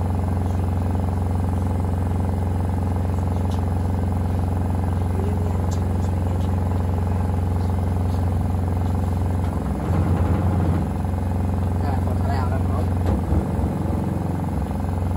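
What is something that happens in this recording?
A washing machine hums steadily as its drum turns.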